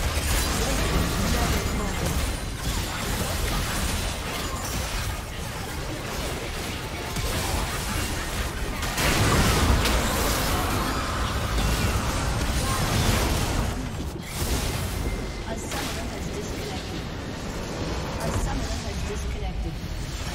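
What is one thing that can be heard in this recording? Video game spell effects crash and whoosh in a busy battle.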